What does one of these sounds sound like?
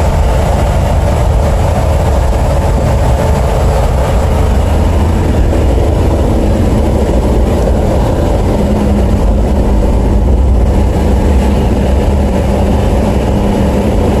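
A 1955 Chevrolet's engine rumbles, heard from inside the cabin, as the car drives along a road.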